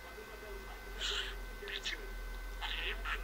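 A budgie chirps in short, high bursts close by.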